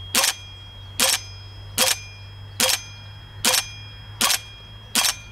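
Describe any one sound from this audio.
A rifle fires single sharp shots at an even, steady pace outdoors.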